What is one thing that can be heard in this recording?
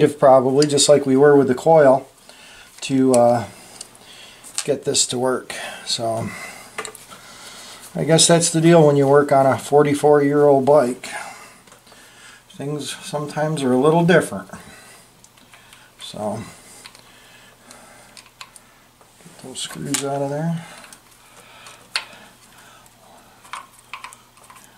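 A screwdriver clicks and scrapes against small metal parts.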